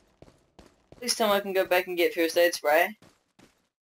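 A man speaks loudly and with animation into a microphone.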